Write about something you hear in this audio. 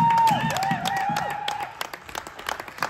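A referee's whistle blows at the start.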